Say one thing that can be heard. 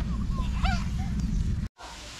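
A young child's voice calls out briefly.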